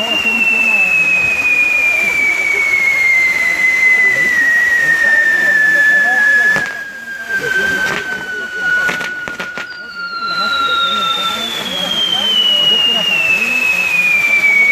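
Spinning fireworks whistle with a high, slowly falling pitch.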